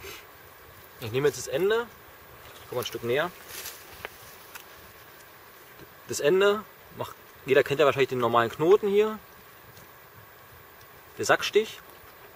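A young man speaks calmly and close by, in short phrases with pauses.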